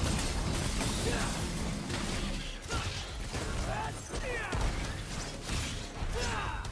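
Sword slashes and heavy impacts crash again and again.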